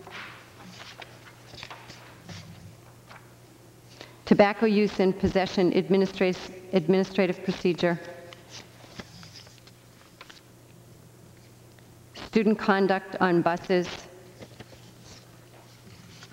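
Paper rustles as it is handled close by.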